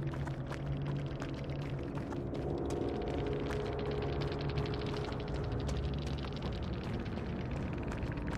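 Footsteps rustle quickly through tall dry grass.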